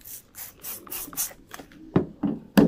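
A spray bottle mists water onto car bodywork in short hissing bursts.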